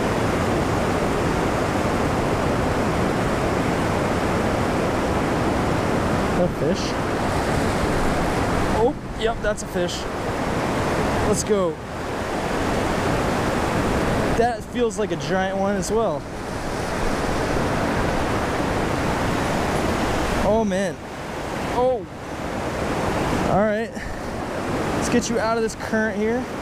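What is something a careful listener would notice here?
Fast water rushes and churns loudly over rapids.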